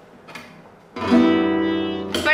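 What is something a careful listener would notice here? A guitar is strummed.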